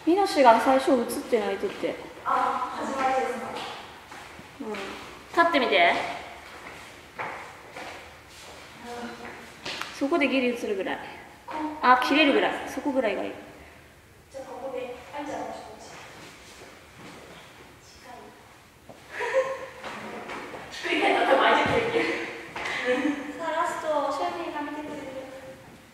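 Several young women chat at a distance in an echoing room.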